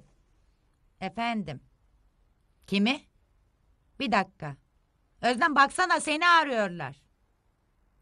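An adult woman speaks with animation, close by.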